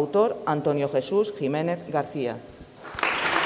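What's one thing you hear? A woman speaks into a microphone, reading out clearly in an echoing hall.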